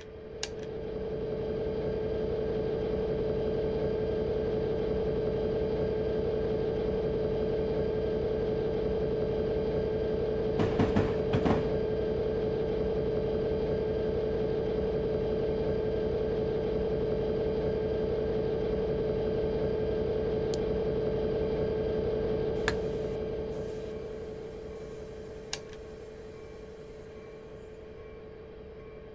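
A diesel locomotive engine drones steadily from inside the cab and fades near the end.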